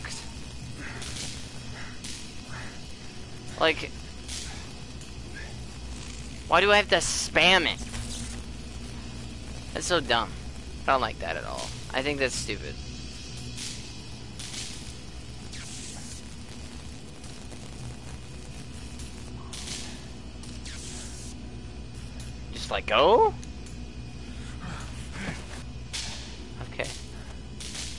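Electricity crackles and zaps in short bursts.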